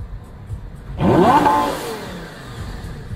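A sports car engine revs sharply.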